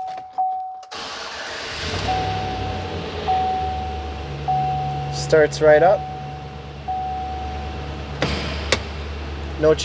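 A car engine starts and idles with a steady low rumble.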